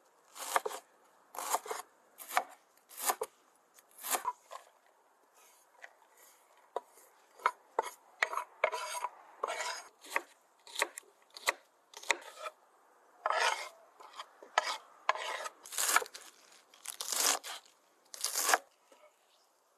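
A knife chops crisp vegetables on a wooden cutting board.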